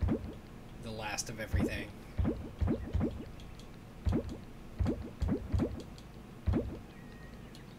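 Short soft popping blips sound in quick succession as items are placed in a game.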